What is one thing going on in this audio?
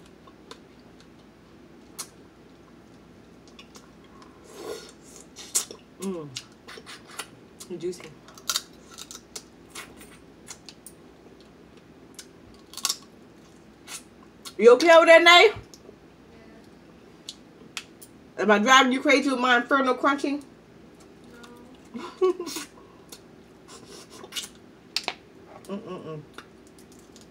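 A young woman eats noisily close to the microphone, with wet chewing, smacking and slurping.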